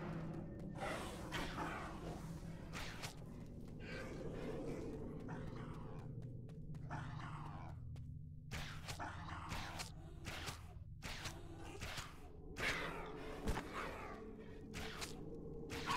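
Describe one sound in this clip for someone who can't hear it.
Swords clash and strike in combat.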